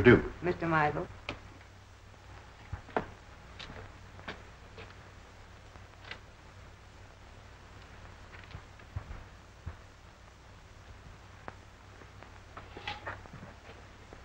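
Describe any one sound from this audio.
A door latch clicks and a door swings open.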